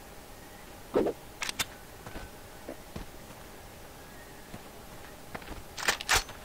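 A gun's metal parts click and clack as it is handled.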